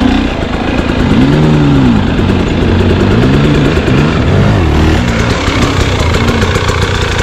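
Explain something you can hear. Other dirt bike engines rev nearby.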